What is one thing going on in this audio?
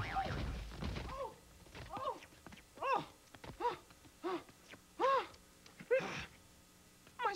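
A man speaks in a deep, gravelly cartoon voice with animation.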